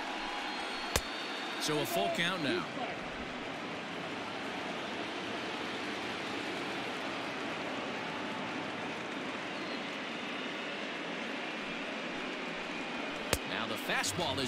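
A ball smacks sharply into a catcher's mitt.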